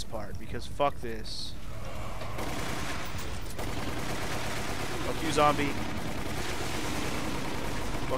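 A submachine gun fires in rapid bursts.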